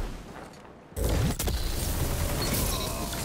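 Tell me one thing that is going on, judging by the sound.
Electric energy crackles and zaps loudly.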